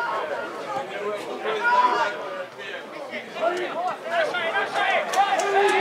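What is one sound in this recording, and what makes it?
Several adult spectators talk and call out close by, outdoors.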